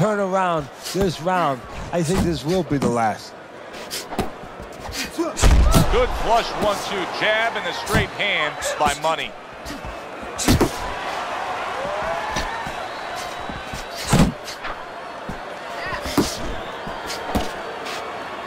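Punches thud against a boxer's body and gloves.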